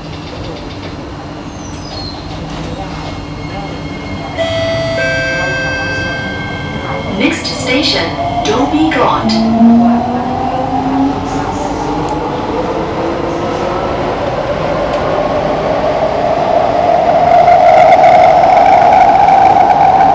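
A train rumbles and rattles along the track.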